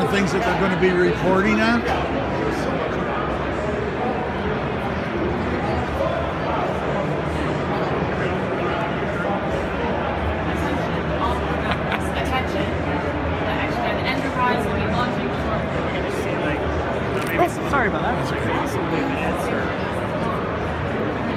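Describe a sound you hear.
A crowd murmurs and chatters steadily.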